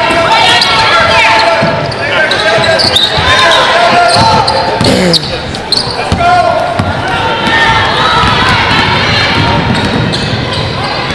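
Crowd voices and players' shouts echo through a large indoor arena.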